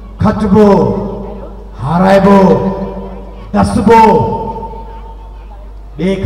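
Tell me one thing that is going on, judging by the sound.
A man sings loudly into a microphone through loudspeakers, in long drawn-out phrases.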